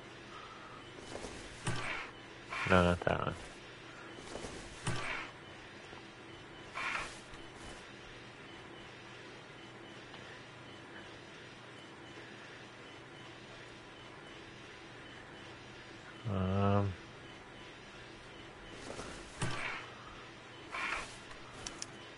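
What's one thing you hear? Metal coins slide and scrape across a hard surface in short bursts.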